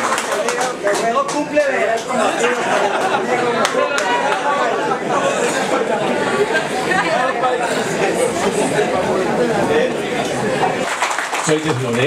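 A crowd chatters and laughs loudly.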